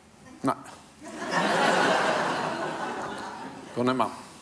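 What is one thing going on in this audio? An older man laughs heartily.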